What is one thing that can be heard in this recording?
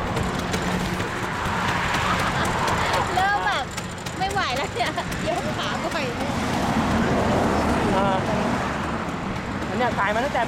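A motorcycle engine hums steadily close by.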